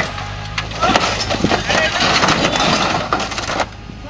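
A vehicle crashes over onto its side with a loud thud.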